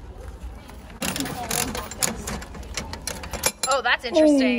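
A coin-operated capsule machine's crank turns with a metallic clicking rattle.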